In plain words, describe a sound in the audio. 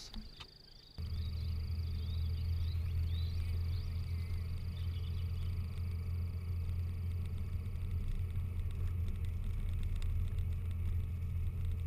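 A vehicle engine hums steadily while driving on a rough dirt track.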